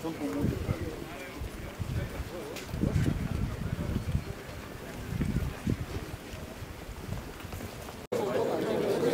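Boots tramp in step on pavement as a group marches.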